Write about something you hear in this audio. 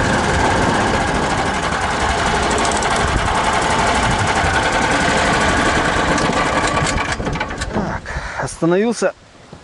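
A small vehicle's engine rumbles loudly as it drives over rough ground.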